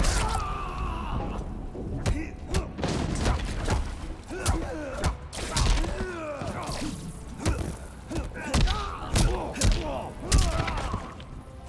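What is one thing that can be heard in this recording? Heavy punches and kicks land with sharp thuds, again and again.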